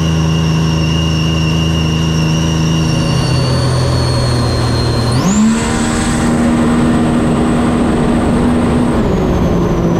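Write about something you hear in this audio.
A jet ski engine drones loudly and shifts pitch as it revs up.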